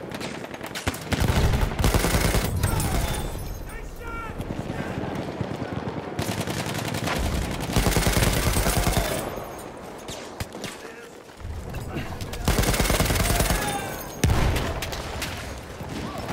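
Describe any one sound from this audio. A machine gun fires in long rapid bursts.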